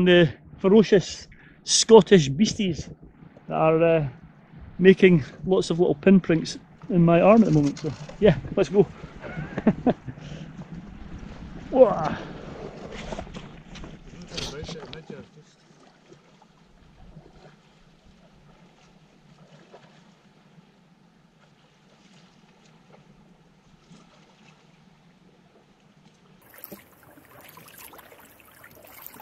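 Water laps gently at a rocky shore.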